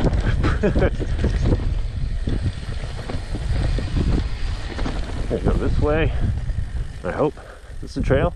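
Bicycle tyres rumble and bump over rough grassy ground.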